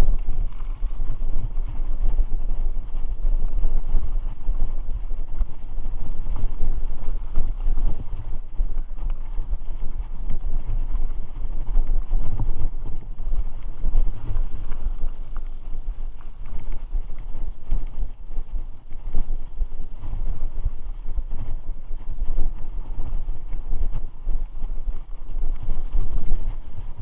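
Wind rumbles heavily against a microphone.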